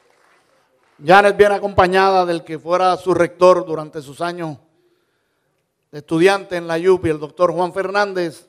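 A man speaks calmly through a loudspeaker, echoing in a large hall.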